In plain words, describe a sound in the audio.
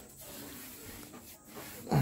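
A brush knocks against a plastic bucket.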